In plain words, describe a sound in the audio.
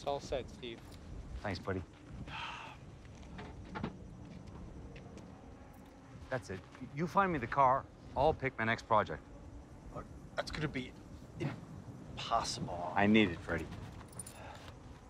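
A middle-aged man speaks calmly outdoors.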